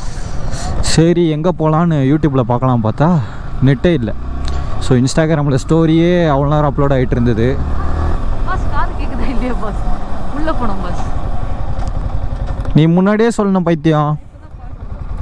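A motorcycle engine revs up and down loudly, close by.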